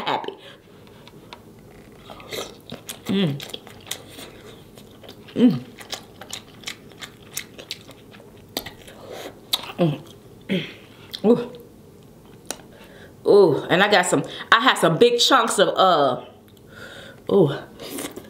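A young woman eats close to a microphone, with wet smacking and chewing sounds.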